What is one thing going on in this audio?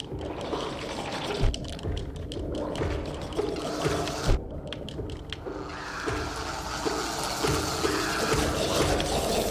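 Sharp slashing and impact sounds of a video game battle ring out.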